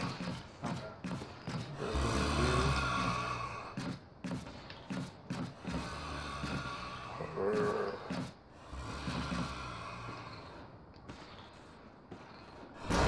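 Footsteps knock on a wooden floor.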